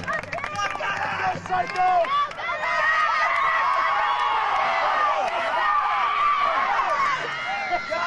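A crowd of young people cheers and shouts excitedly outdoors.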